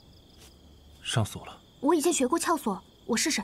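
A young woman speaks softly and earnestly nearby.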